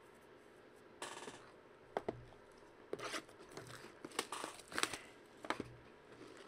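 Cardboard card packs rustle and tap as they are handled close by.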